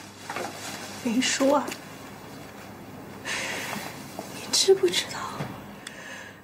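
A young woman speaks quietly up close.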